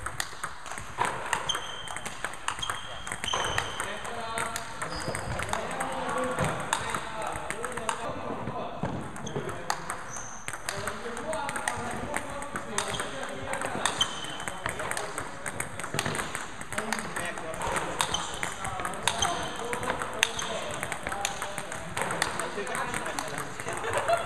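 A table tennis ball clicks rapidly back and forth off paddles and a table in an echoing hall.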